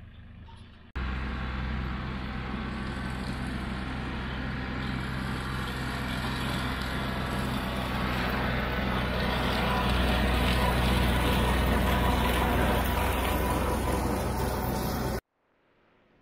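A tractor engine rumbles steadily, drawing closer.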